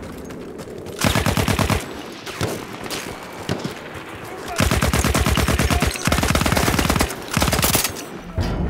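A machine gun fires rapid, loud bursts.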